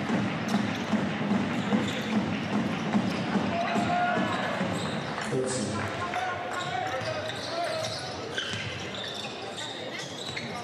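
A crowd murmurs in a large, echoing arena.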